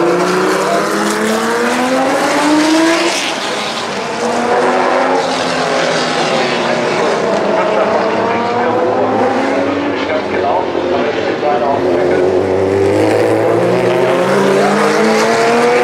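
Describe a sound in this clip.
Racing car engines roar loudly, rising and falling in pitch as the cars accelerate and brake.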